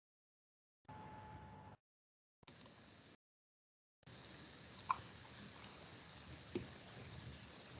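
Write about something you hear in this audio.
An elderly woman speaks quietly over an online call.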